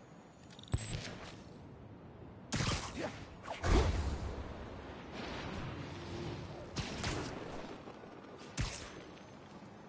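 Web lines zip and snap with sharp thwips.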